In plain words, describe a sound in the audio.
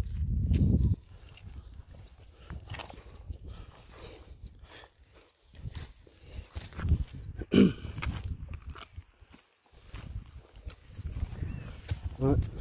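A hand trowel scrapes and chops into dry soil and stubble.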